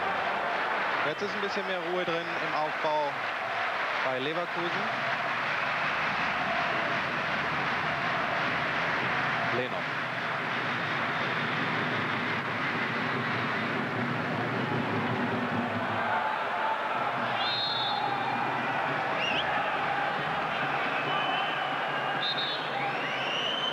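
A large stadium crowd roars and chants steadily in the open air.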